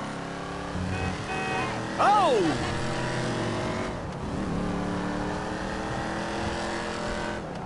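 A car engine rumbles as the car drives along.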